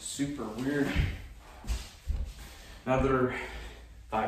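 A young man's body thumps on a wooden floor as he moves.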